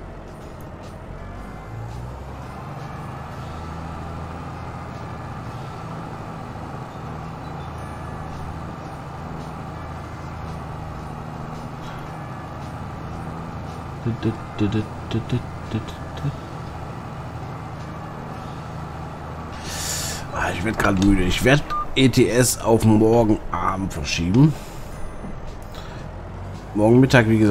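A tractor engine hums steadily as it drives along.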